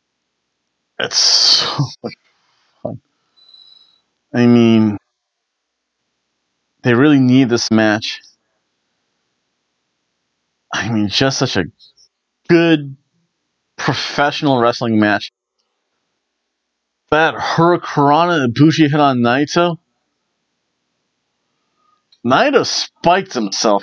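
A middle-aged man reads aloud close to a microphone, in bursts with pauses.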